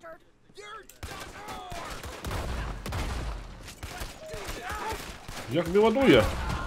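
Gunshots ring out in quick succession.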